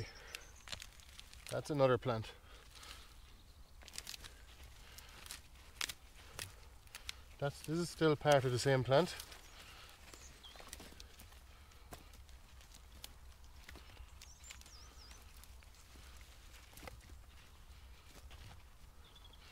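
Gloved hands rustle and crumble soil.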